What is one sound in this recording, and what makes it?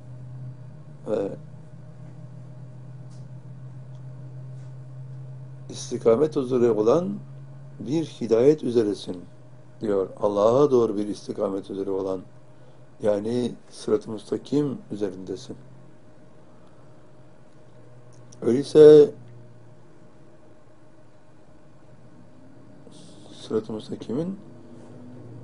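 An elderly man speaks calmly and slowly, close by, with long pauses.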